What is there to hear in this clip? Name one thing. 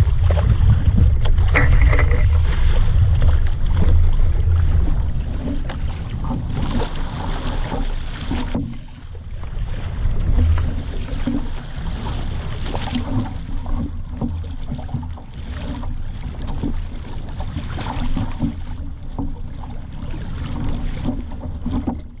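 Water splashes and slaps against a small boat's hull.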